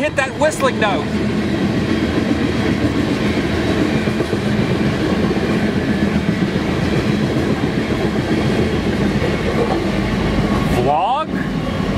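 A long freight train rumbles past.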